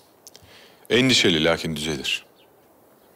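A man speaks calmly and quietly, close by.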